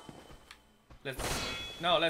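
A sword strikes a stone wall with a metallic clang.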